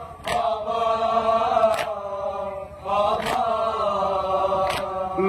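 A crowd of men beats their chests in rhythm.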